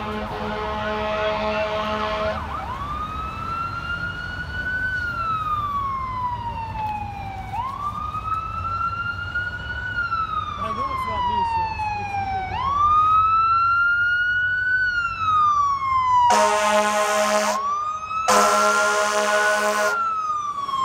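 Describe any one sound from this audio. Traffic rumbles along the street.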